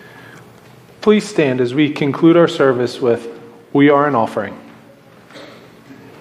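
A middle-aged man speaks calmly through a microphone in a large echoing room.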